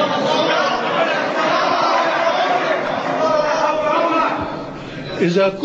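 A crowd cheers and applauds loudly in a large hall.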